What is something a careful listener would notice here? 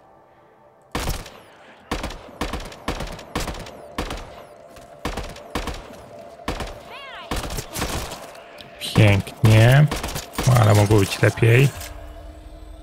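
A rifle fires a rapid series of sharp shots.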